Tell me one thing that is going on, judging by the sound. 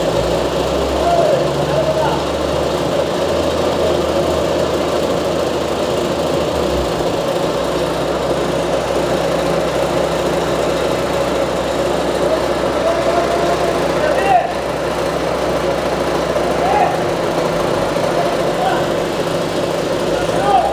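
Asphalt crunches under a roller's drum.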